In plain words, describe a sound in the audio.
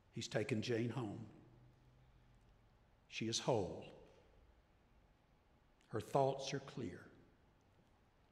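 An elderly man speaks slowly and with emphasis into a microphone.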